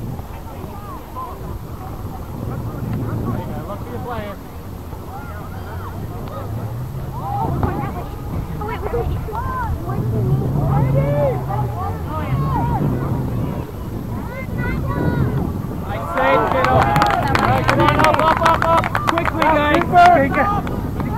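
Young players shout to one another across an open outdoor field.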